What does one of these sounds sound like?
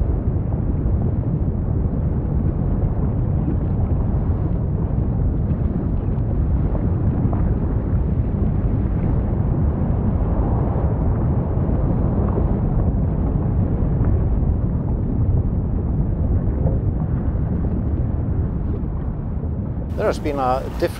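Erupting lava roars and rumbles deeply.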